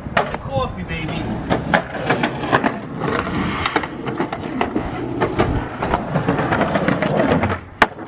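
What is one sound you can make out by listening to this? Skateboard wheels roll and clatter on pavement.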